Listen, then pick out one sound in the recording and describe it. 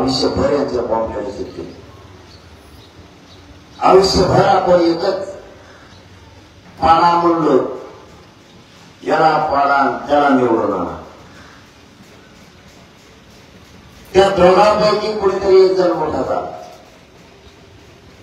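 A young man speaks forcefully into a microphone over loudspeakers, in short bursts with pauses.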